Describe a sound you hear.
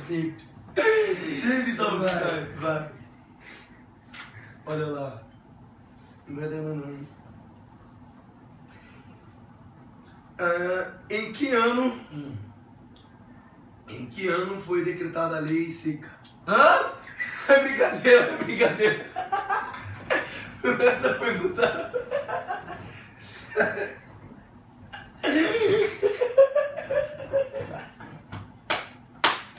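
A young man laughs heartily nearby.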